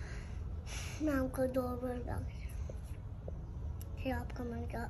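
A little girl speaks close by in a high, sing-song voice.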